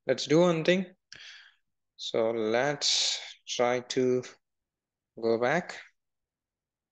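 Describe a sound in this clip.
A man speaks calmly into a close headset microphone, in short phrases with pauses.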